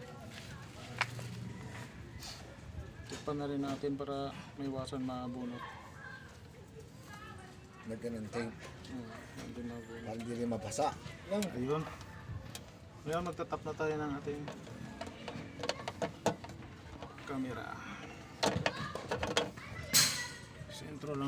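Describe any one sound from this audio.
Small plastic parts click as wires are handled.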